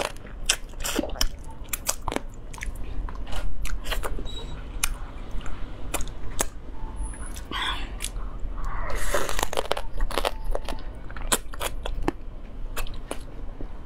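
A young woman chews and slurps food noisily close to a microphone.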